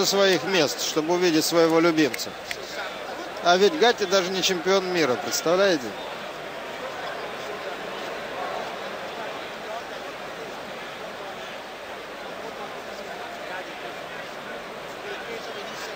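A crowd murmurs in a large indoor arena.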